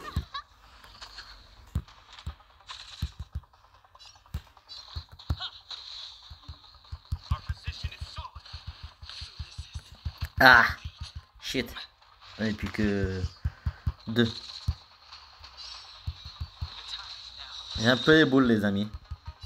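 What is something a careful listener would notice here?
Weapons strike with sharp, punchy impacts.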